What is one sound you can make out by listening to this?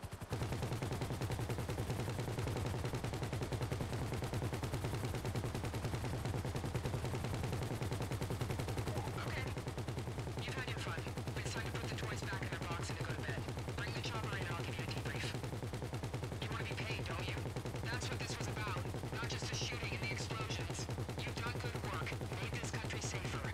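A helicopter's rotor thumps steadily close by.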